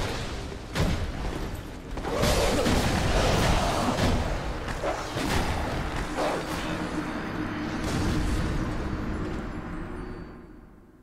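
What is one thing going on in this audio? Metal weapons clash and strike in a loud fight.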